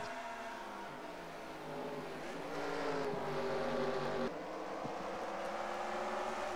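Several race car engines roar and drone at high revs.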